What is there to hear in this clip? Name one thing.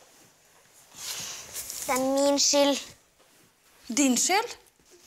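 A young girl answers quietly and sadly, close by.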